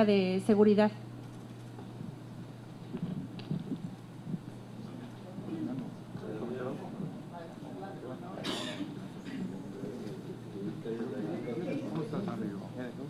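A crowd of people murmurs and chatters in a large room.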